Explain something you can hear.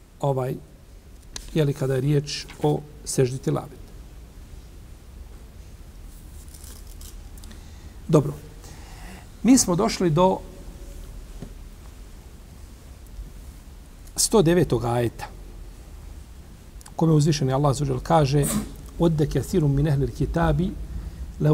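A middle-aged man speaks calmly into a close microphone, with pauses between phrases.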